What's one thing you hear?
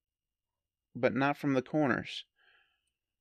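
A man speaks briefly and casually into a microphone.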